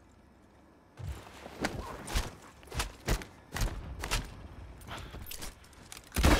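A rifle clicks and clatters as it is handled.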